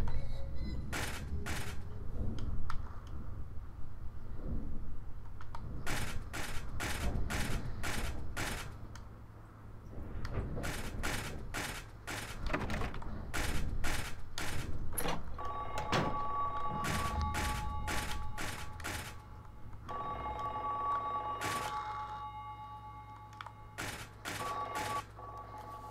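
Footsteps clang on a metal grating at a steady walking pace.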